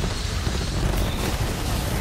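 Electric zaps crackle loudly in a video game.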